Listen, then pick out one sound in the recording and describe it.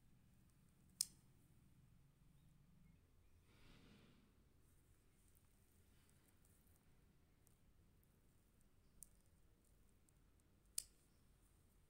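A metal fork taps lightly on paper.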